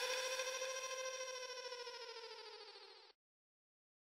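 A spaceship engine whines steadily, dropping slightly in pitch as it fades away.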